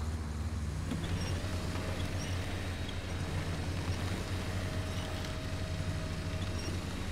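A winch motor whines steadily.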